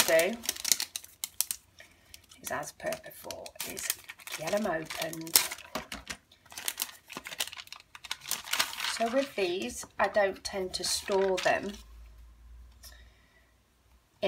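Stiff plastic sheets rustle and crinkle as hands handle them.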